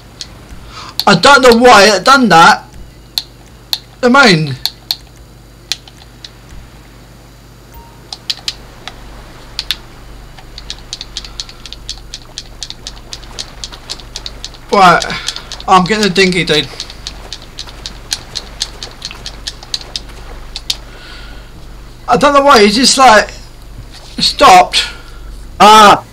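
A man talks casually into a headset microphone, in short bursts.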